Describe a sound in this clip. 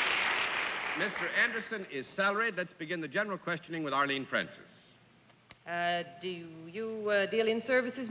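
A middle-aged man speaks clearly into a microphone.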